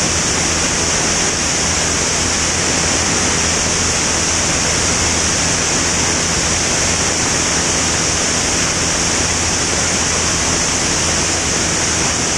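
A small plane's propeller engine drones steadily and loudly.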